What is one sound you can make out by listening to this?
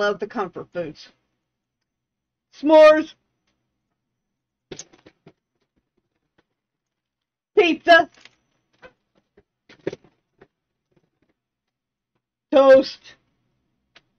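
A woman speaks with animation into a microphone in short bursts.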